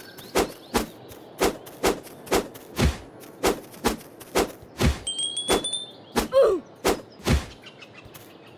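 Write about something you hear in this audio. A sword swishes and strikes again and again in quick repeated hits.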